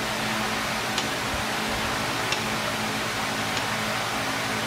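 Metal tools clink sharply against metal a few times.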